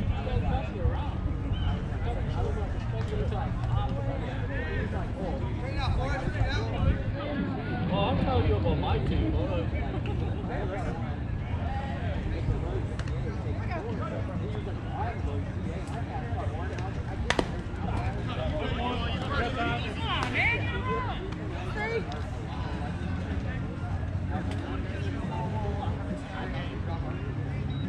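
Men and women talk and call out across an outdoor field.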